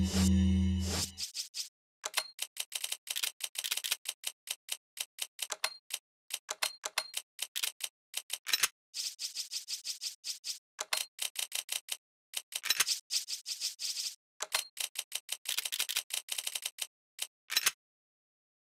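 Quick game menu clicks tick as a selection cursor moves.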